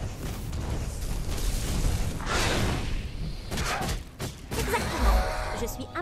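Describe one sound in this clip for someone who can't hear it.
Magic blasts burst and crackle in quick succession.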